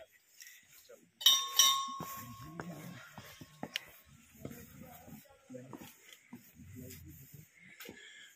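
Footsteps scuff on stone steps.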